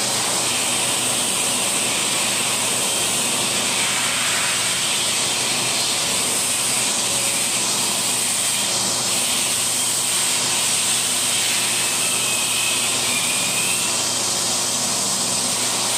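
A vacuum cleaner runs with a steady loud whine and rush of air.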